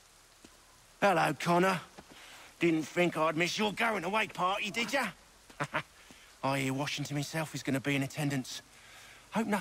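A man speaks in a calm, mocking tone close by.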